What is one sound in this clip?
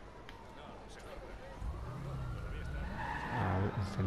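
A car engine hums and revs as the car pulls away.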